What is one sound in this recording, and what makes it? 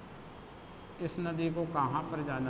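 A man speaks calmly, as if teaching.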